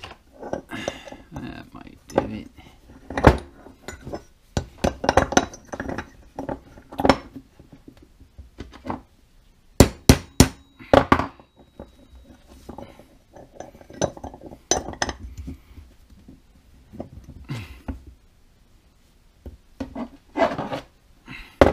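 Metal parts click and clink against each other.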